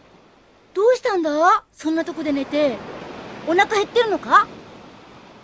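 A young boy cries out in alarm.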